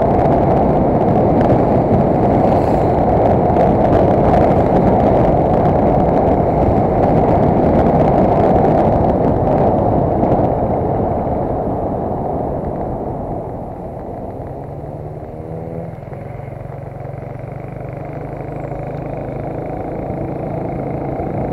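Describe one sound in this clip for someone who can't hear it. Wind rushes loudly past the microphone, easing off later.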